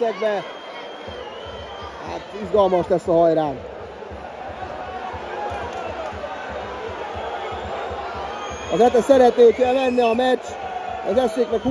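A crowd murmurs steadily in the background.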